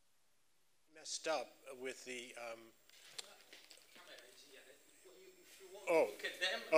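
A man speaks calmly in a large room with a slight echo.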